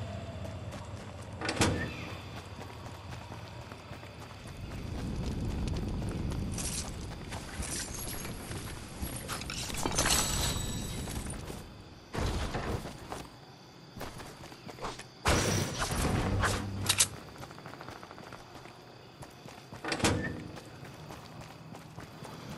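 Footsteps run over grass and ground.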